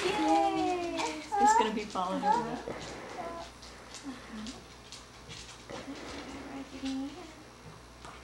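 A young woman reads out close by, in a sing-song voice.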